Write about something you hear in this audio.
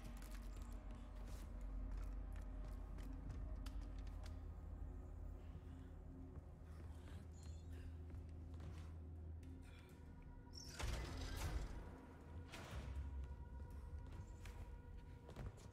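Clothes rustle and hands scrape as a man climbs.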